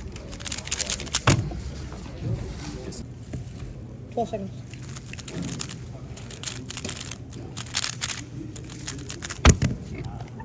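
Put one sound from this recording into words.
A puzzle cube clicks and rattles rapidly as it is turned.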